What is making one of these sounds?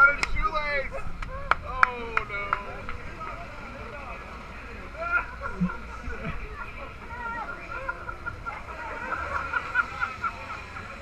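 A crowd of people chatters and calls out nearby outdoors.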